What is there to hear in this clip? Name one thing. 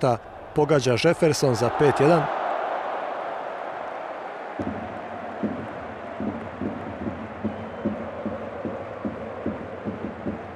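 A large stadium crowd roars and slowly dies down.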